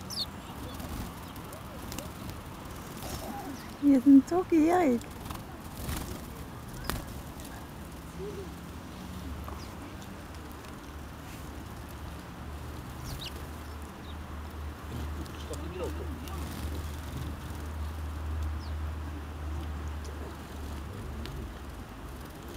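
Small birds chirp nearby.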